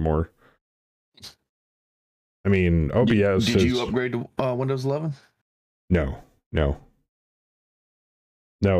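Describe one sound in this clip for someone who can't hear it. A middle-aged man talks casually into a close microphone, in short bursts with pauses.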